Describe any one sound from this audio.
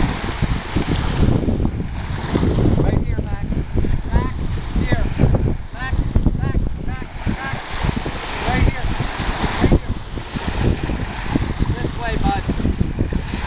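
Small waves wash and splash onto a shore.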